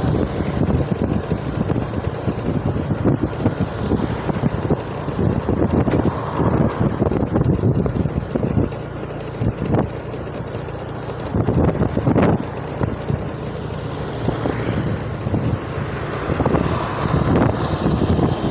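Motorbikes pass by with buzzing engines.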